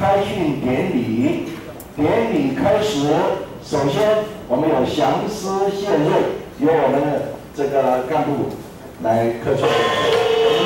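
An elderly man speaks through a microphone over loudspeakers.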